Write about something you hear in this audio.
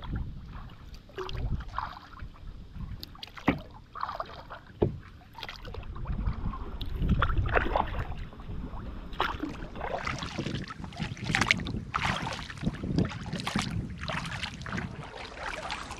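A paddle splashes and dips in water.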